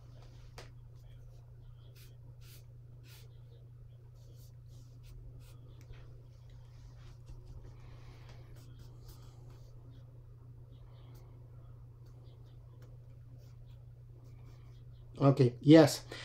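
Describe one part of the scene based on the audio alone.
A brush dabs and scratches softly on paper.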